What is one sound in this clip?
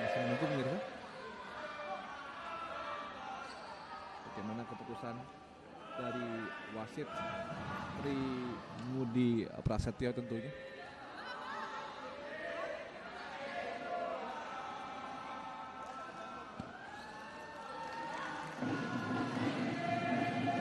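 A crowd chants and cheers in a large echoing hall.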